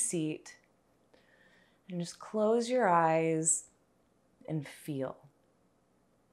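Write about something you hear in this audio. A young woman speaks calmly and softly nearby.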